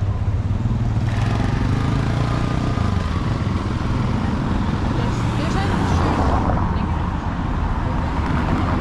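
Cars drive past on cobblestones.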